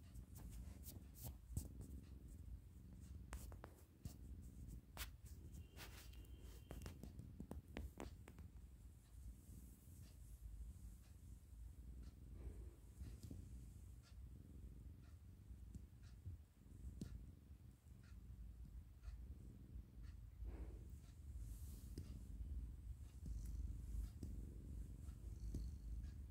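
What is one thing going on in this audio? A cat purrs steadily up close.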